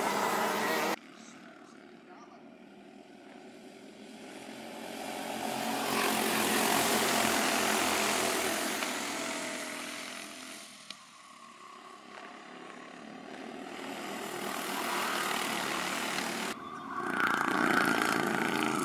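Kart engines buzz and whine loudly as karts race past.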